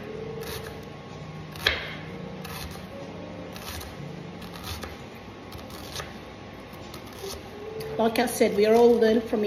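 A knife chops an onion on a wooden board with soft, regular knocks.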